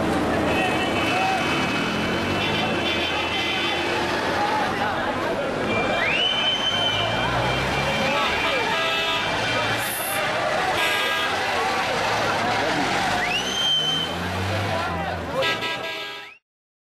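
A crowd of men talk and shout loudly nearby.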